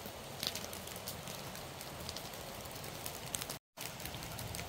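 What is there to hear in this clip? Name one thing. Dry straw crackles and pops as it burns.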